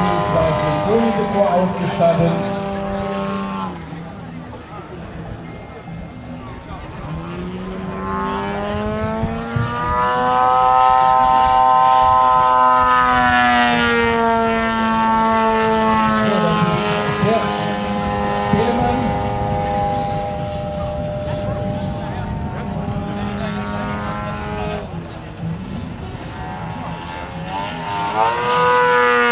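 A small propeller plane's engine drones overhead, rising and falling in pitch as it loops and turns.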